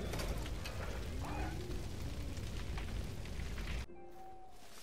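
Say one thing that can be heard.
A grass fire crackles and roars.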